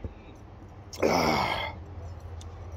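A man exhales loudly after drinking.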